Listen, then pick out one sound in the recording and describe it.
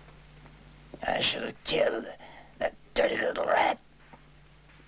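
A man speaks tensely nearby.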